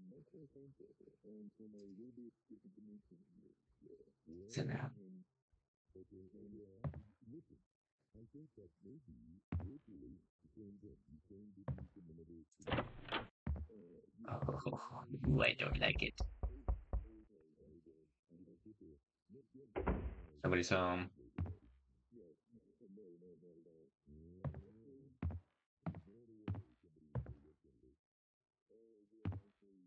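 A young man talks calmly and steadily close to a microphone.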